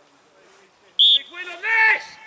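A referee's whistle blows a short sharp blast.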